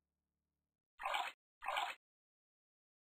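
Liquid pours briefly into a glass beaker.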